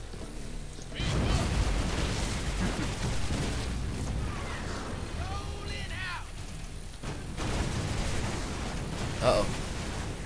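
A powerful laser beam roars and crackles steadily.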